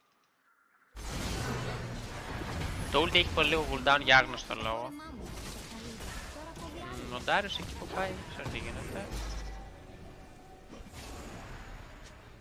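Game spell effects whoosh and blast in quick bursts.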